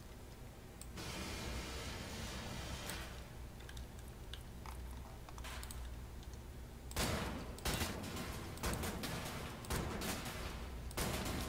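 A laser cutter hisses as it burns through metal.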